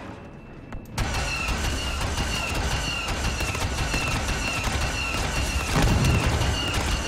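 Blaster shots fire rapidly in quick bursts.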